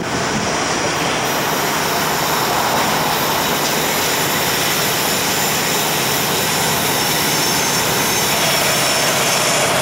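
A train rumbles as it approaches along the tracks.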